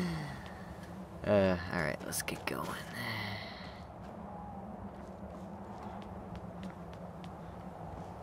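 Footsteps crunch over snow and stone.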